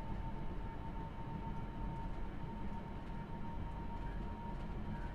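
A train engine rumbles steadily from inside the cab.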